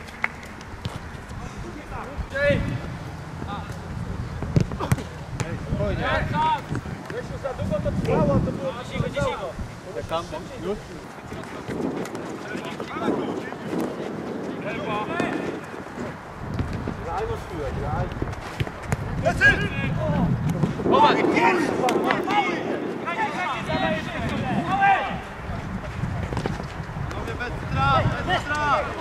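Men shout to each other across an open pitch outdoors.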